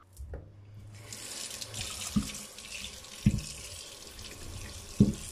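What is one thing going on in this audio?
Water runs and splashes as potatoes are rinsed.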